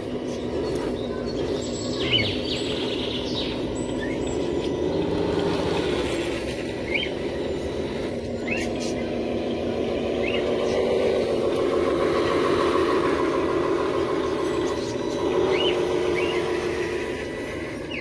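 A small electric motor whines steadily.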